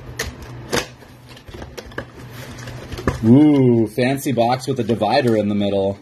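Paper rustles and crinkles as a box flap is pulled back.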